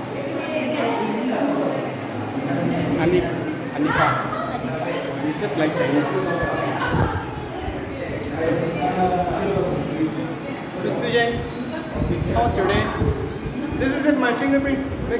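Many young people chatter in the background of an echoing room.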